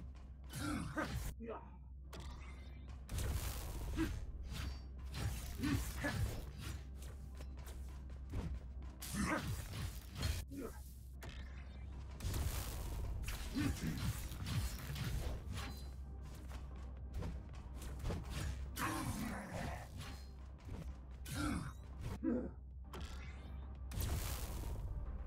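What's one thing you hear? A heavy gun fires in bursts.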